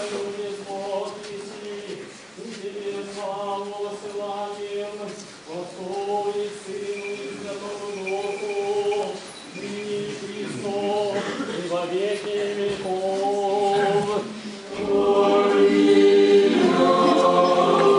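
A group of men sings a slow chant together in a large echoing hall.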